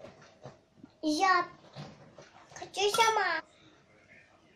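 A small child speaks in a high voice close by.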